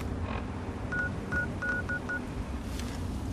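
Short electronic beeps sound in quick succession.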